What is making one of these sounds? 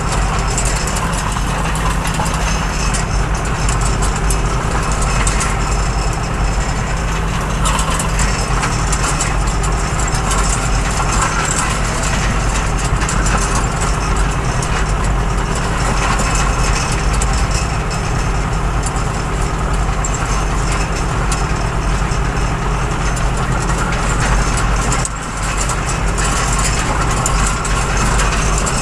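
A tractor engine drones steadily close by.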